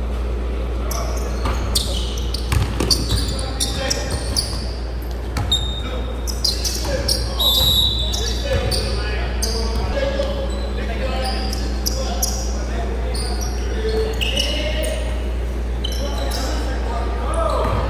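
Young men call out to each other across the court.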